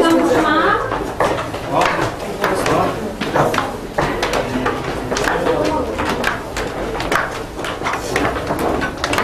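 Footsteps climb a staircase.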